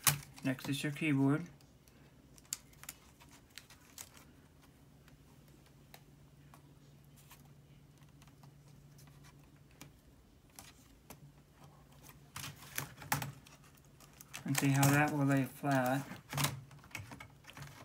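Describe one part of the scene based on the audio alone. Plastic parts click and tap as they are handled.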